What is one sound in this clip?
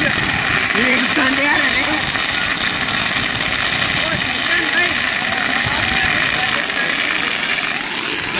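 Firecrackers crackle and pop nearby.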